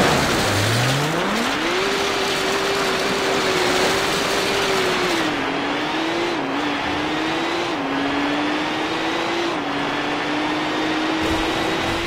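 Tyres rumble over rough gravel.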